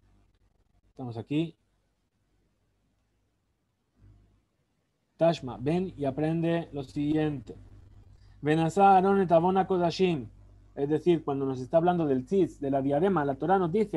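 A man speaks calmly through a microphone over an online call.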